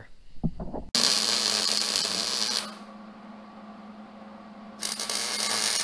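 An impact wrench rattles loudly in short bursts.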